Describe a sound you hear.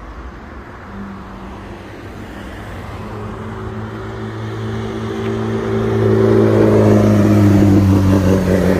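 A sports car engine rumbles and revs as it draws near.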